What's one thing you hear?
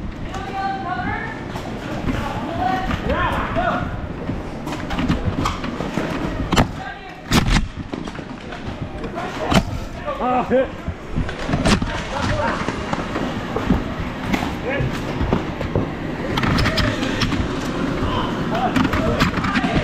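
A toy foam blaster fires with sharp pops.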